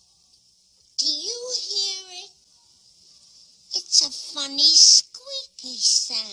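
An elderly woman speaks with animation.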